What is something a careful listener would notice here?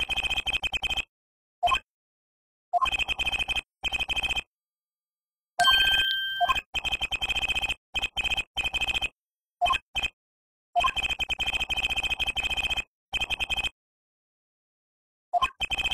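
Rapid electronic blips chatter in quick bursts, pausing between them.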